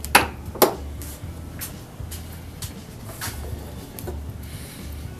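Metal tools clink against each other on a bench.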